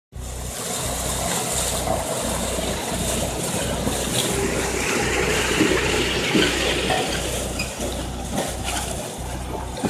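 A road roller's engine rumbles steadily.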